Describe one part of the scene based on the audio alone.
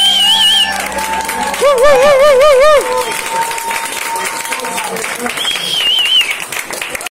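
A live band plays loudly.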